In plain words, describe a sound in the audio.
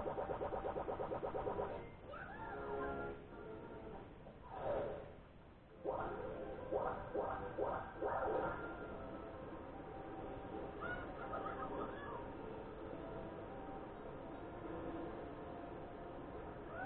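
Cheerful electronic game music plays through a television loudspeaker.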